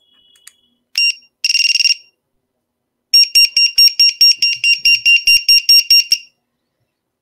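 An electronic device beeps in quick, repeated high tones.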